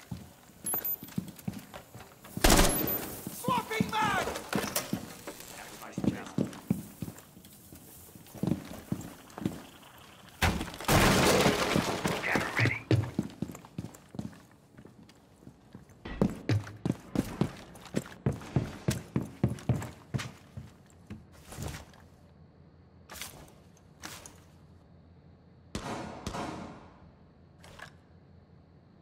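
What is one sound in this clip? Footsteps thud quickly on hard floors.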